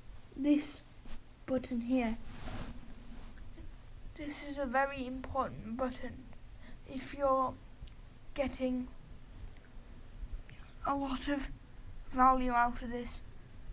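A boy talks casually and close to a microphone, with pauses.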